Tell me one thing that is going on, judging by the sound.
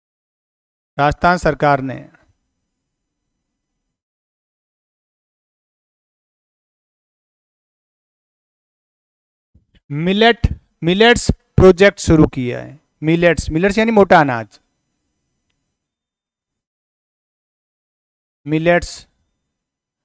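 A middle-aged man speaks calmly into a close clip-on microphone, in short bursts with long pauses.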